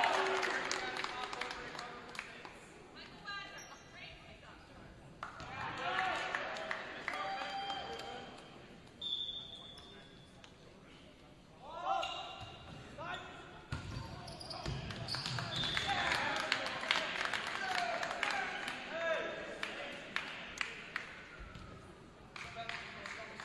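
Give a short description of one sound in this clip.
Volleyball players shout and call out to each other across a large echoing gym.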